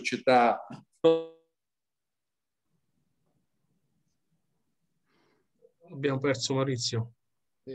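A man speaks calmly over an online call, in short bursts.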